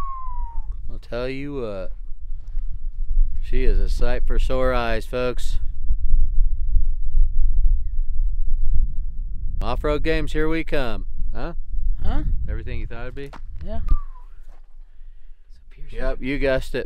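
A man talks calmly and close to the microphone.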